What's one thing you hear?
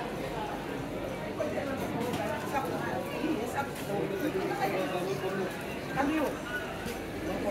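A crowd of shoppers chatters around, close by and in the distance.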